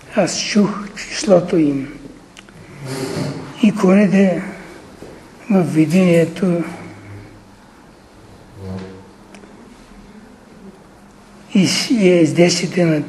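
An elderly man reads aloud in a slow, measured voice, in a room with some echo.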